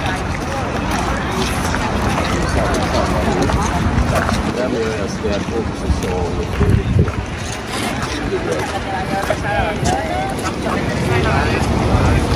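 People chat nearby as they walk past.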